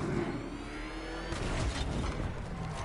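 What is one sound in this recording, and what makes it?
A car engine roars and revs up.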